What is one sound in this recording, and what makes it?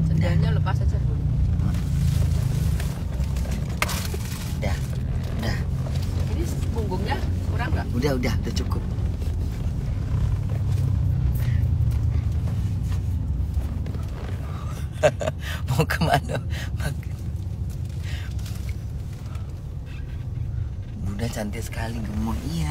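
A low engine rumble hums steadily inside a vehicle.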